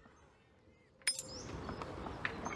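A game menu makes a bright shimmering whoosh as it opens.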